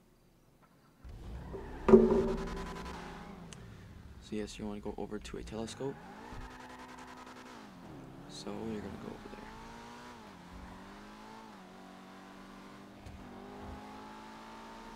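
A sports car engine starts and revs, shifting up through the gears as it speeds away.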